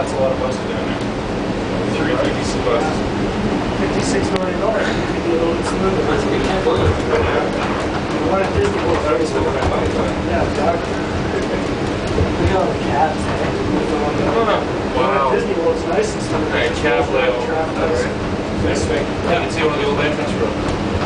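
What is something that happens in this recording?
A monorail train hums steadily as it glides along its track.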